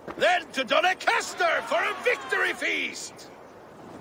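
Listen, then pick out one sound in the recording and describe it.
A group of men cheer and shout.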